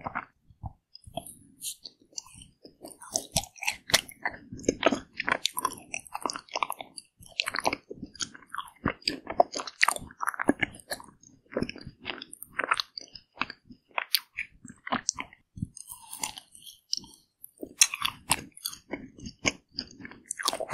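A woman chews and smacks her lips close to a microphone.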